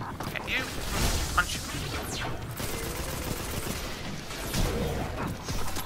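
An energy blast whooshes and explodes.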